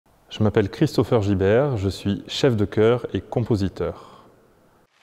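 A young man speaks calmly and closely into a clip-on microphone.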